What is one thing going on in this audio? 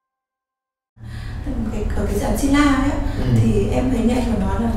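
A young woman speaks calmly and clearly into a nearby microphone.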